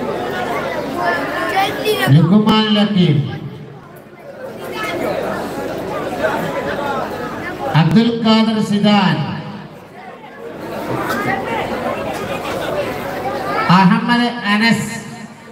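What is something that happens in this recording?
Men's voices chant in repeated phrases through a loudspeaker.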